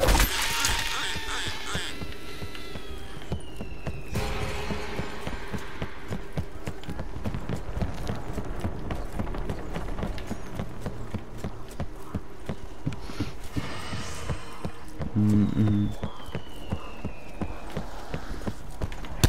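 Footsteps thud steadily on a wooden deck.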